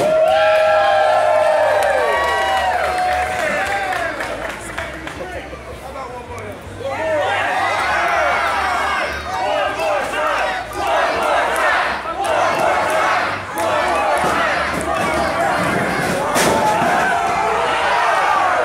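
A crowd of people chatters and cheers in a large echoing hall.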